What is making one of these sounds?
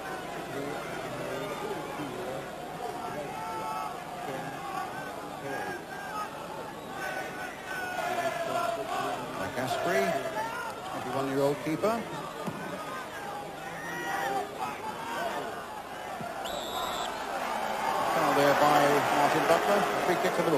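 A large crowd murmurs and roars in an open stadium.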